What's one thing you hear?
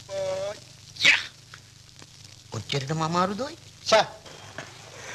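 A man speaks loudly and urgently nearby.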